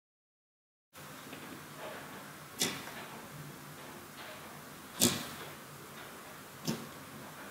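Fingers press and squelch into soft slime.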